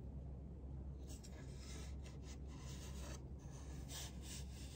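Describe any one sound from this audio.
Hands rub and brush softly against a smooth wooden board.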